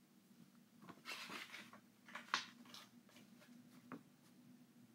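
A plastic case rattles and clicks as hands open it.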